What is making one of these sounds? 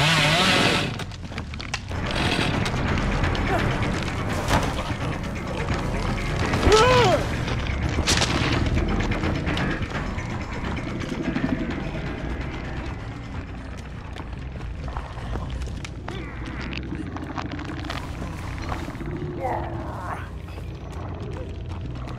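Heavy footsteps thud on wooden floors.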